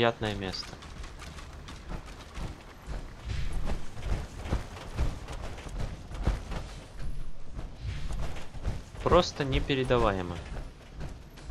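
Heavy metal footsteps thud and clank on a metal floor.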